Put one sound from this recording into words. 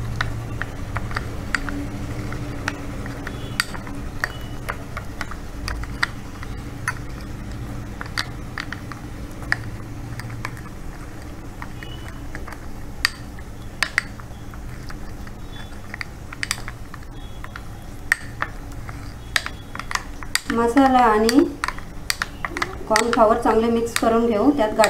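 A spoon stirs and clinks against a ceramic bowl.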